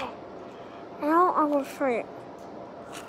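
A young girl speaks briefly close by.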